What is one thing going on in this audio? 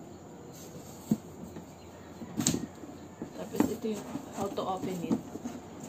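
A stiff paper bag rustles and crinkles as it is handled.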